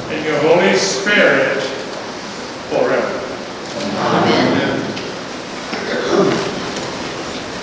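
An elderly man speaks slowly into a microphone in a large echoing hall.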